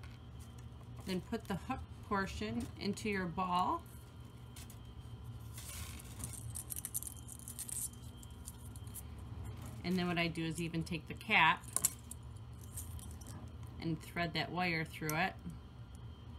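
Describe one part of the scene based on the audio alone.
A woman talks calmly and close by, pausing between phrases.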